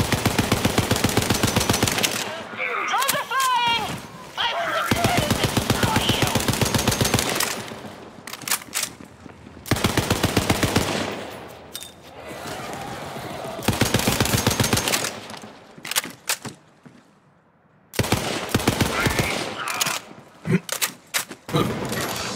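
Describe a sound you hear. A rapid-fire gun shoots in fast bursts.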